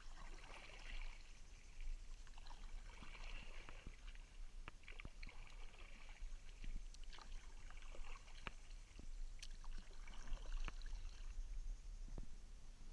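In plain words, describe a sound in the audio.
Water laps and trickles against a boat's hull.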